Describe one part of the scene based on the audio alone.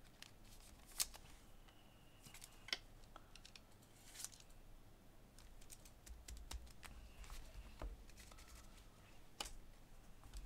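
Plastic card cases click and tap softly as they are handled.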